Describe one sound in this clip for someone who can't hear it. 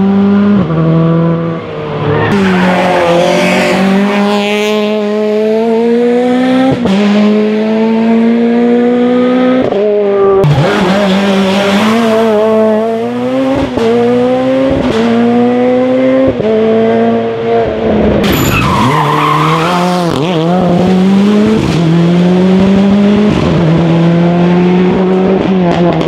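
A rally car engine roars loudly, rising in pitch as it accelerates.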